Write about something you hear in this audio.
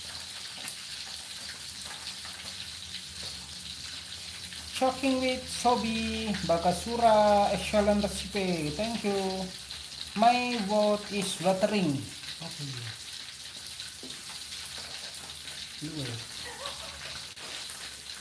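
A metal spatula scrapes against a wok.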